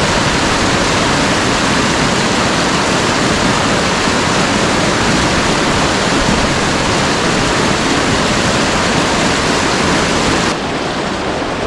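Water rushes loudly over rocks close by.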